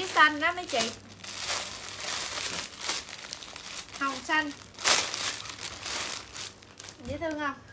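Fabric rustles as clothes are handled and unfolded.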